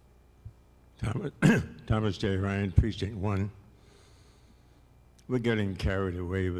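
An elderly man speaks slowly into a microphone over a loudspeaker in a large hall.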